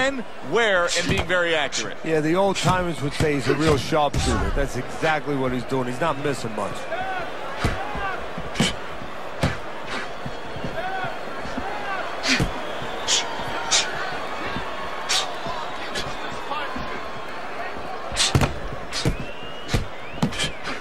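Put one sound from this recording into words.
Gloved punches land with sharp thuds.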